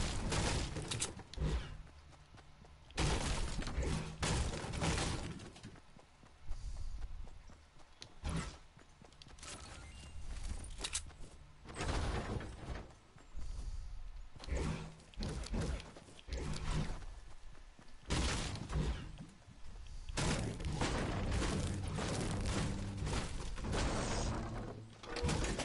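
A pickaxe strikes wood with repeated hollow thuds.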